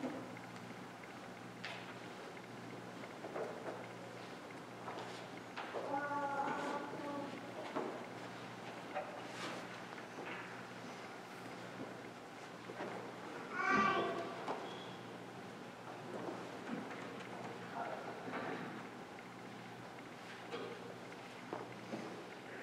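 Footsteps shuffle across a hard floor.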